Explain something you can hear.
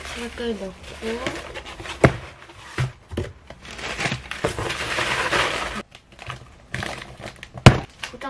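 Cardboard rustles and scrapes as a box is handled.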